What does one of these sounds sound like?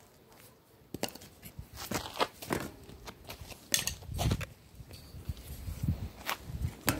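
A bicycle wheel clatters as it topples onto the ground.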